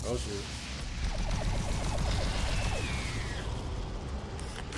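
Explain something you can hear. A gun fires rapid bursts of energy shots.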